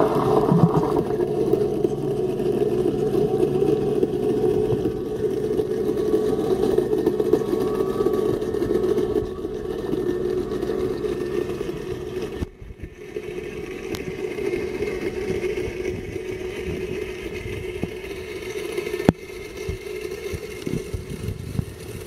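A pool cleaning robot hums steadily underwater.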